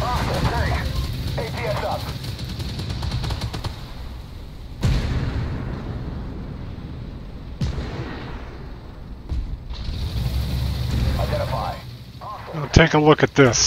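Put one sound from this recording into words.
A tank engine rumbles low.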